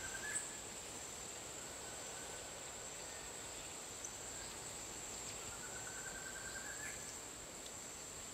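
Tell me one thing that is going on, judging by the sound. Wind blows steadily through tall grass outdoors.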